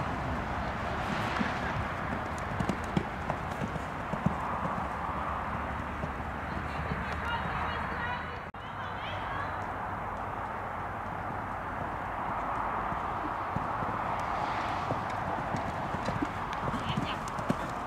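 A horse's hooves thud on sand at a canter.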